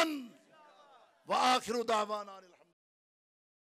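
A group of men chant slogans loudly together.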